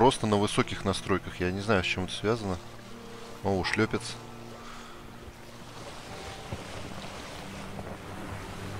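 Water splashes and ripples against a small boat gliding along.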